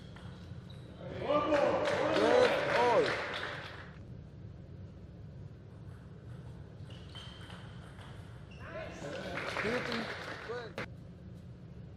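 A crowd cheers loudly in a large hall.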